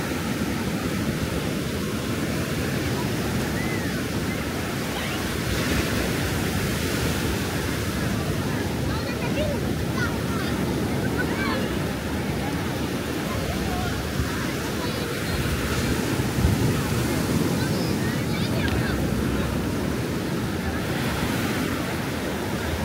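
Voices of many people chatter in the distance.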